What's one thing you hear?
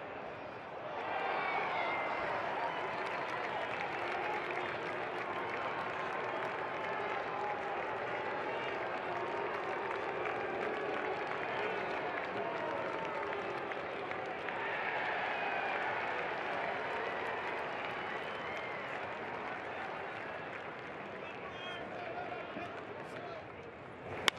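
A large stadium crowd cheers loudly.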